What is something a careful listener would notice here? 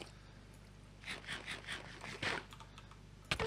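Food is munched with crunchy bites.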